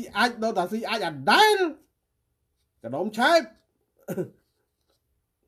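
A middle-aged man talks with animation through a microphone.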